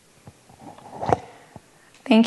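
A microphone thumps as a woman handles it.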